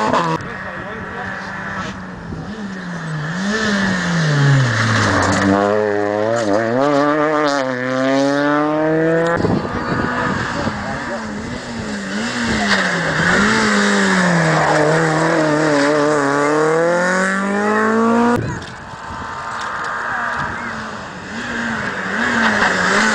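A rally car engine roars closer, revving hard through gear changes, and races past.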